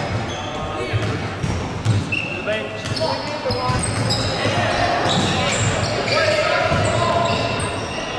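A crowd of spectators murmurs and chatters nearby.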